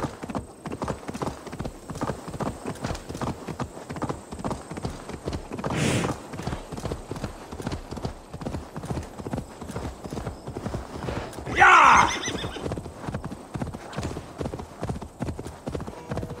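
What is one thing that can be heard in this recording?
Horse hooves pound rhythmically on a dirt path at a gallop.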